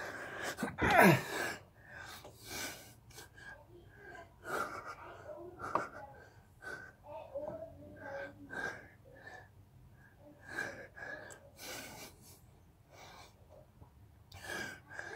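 A man breathes hard and rhythmically close by.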